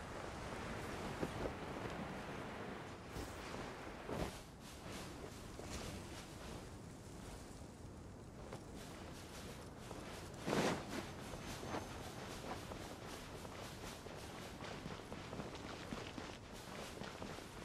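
Quick footsteps run over sand.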